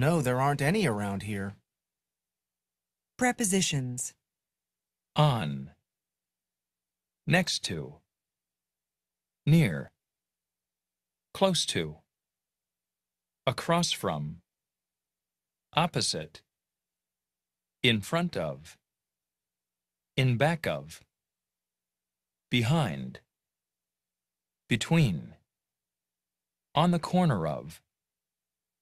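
A woman speaks clearly over an online call in short phrases with pauses.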